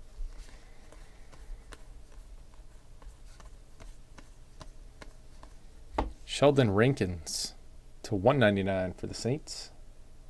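Stiff cards slide and flick against each other in a pair of hands.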